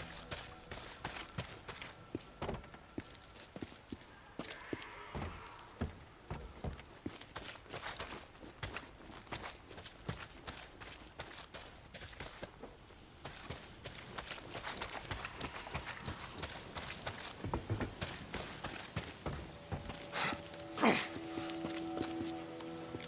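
Footsteps crunch over dirt and gravel.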